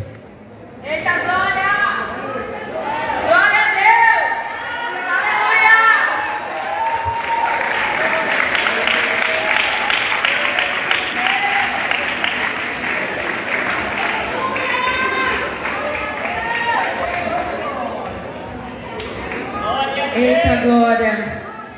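A large crowd sings together, echoing through a large hall.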